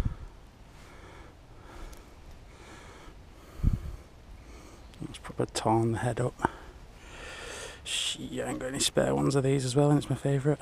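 Small metal hooks clink softly against a fishing lure.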